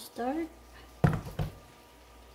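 A plastic bottle is set down on a hard counter with a knock.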